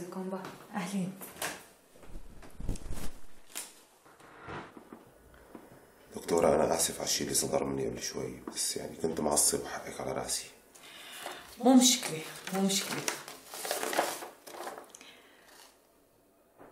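A woman speaks calmly, reading out.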